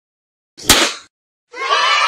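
Party poppers pop with a sharp bang.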